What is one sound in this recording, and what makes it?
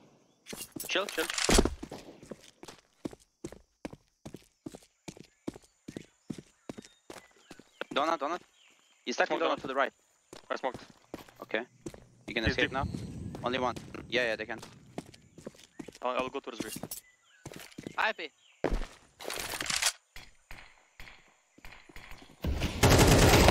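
Footsteps run quickly over hard stone.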